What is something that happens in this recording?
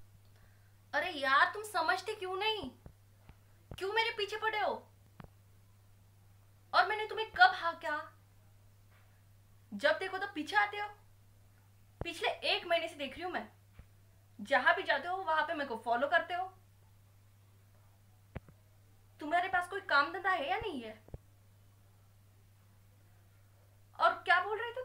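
A young woman speaks with animation close by, in short bursts with pauses.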